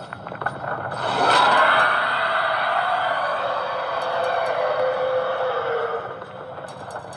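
A loud, eerie screech plays through a small speaker.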